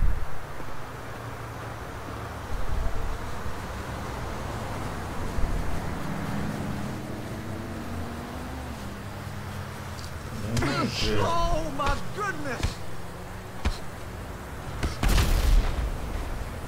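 Traffic rumbles steadily on a nearby road.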